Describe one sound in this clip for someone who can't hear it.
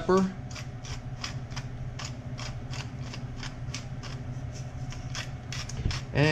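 A pepper mill grinds with quick, rasping clicks.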